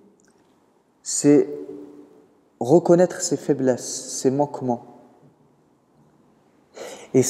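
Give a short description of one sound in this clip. A man speaks calmly into a microphone in a room with slight echo.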